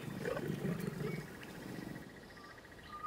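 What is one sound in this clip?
A lion growls low while feeding.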